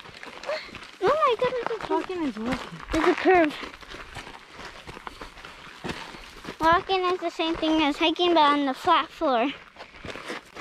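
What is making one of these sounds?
A child talks with animation close to the microphone.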